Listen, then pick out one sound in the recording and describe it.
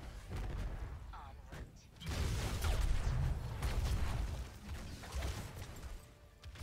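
Game weapons fire and explosions burst in rapid bursts.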